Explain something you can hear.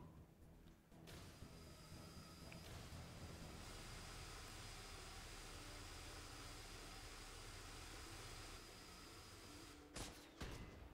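A laser beam hums and sizzles steadily.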